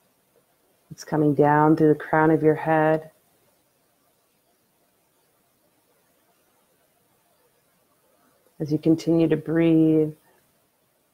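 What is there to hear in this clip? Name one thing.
A young woman sings softly and smoothly, close by, in two short phrases.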